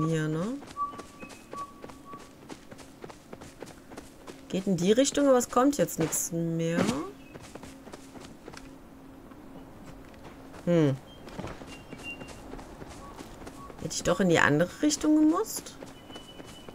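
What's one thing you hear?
Footsteps patter quickly over soft grass.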